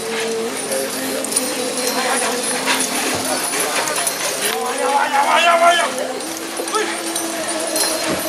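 Horses' hooves thud on soft dirt as riders gallop.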